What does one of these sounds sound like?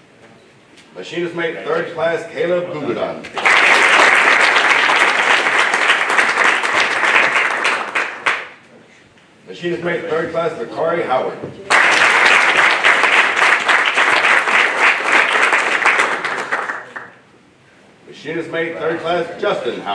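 A man speaks calmly through a microphone in a hall.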